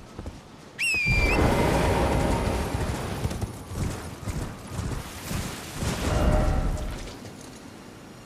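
Hooves gallop steadily over the ground.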